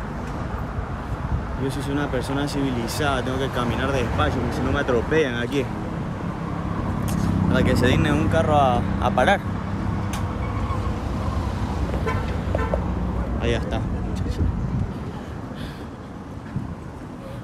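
Traffic rumbles steadily outdoors at night.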